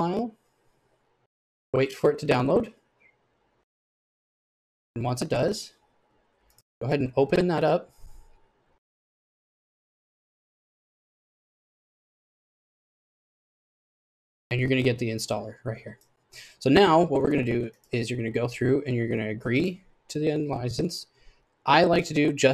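A man talks calmly into a microphone, pausing now and then.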